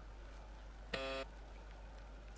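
A keypad beeps once.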